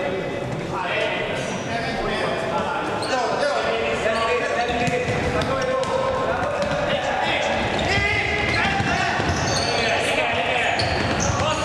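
Sneakers squeak sharply on a hard floor in a large echoing hall.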